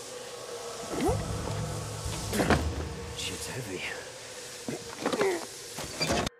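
A wooden crate lid knocks and scrapes as it is lifted.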